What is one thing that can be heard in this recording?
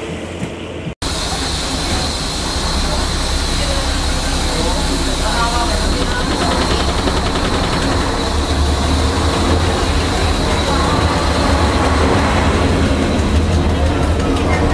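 A diesel engine drones steadily from inside a moving train.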